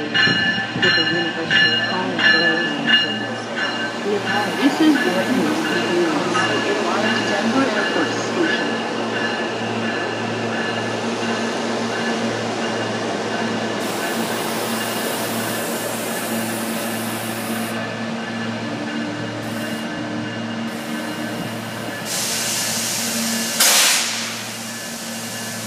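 A commuter train hums and whirs steadily as it pulls away.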